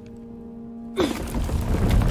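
A heavy wooden lever creaks as it is pushed.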